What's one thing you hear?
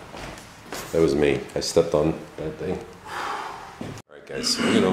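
A man speaks from another room.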